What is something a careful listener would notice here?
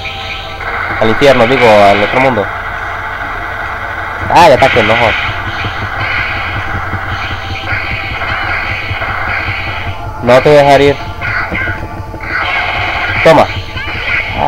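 A crackling energy aura roars steadily.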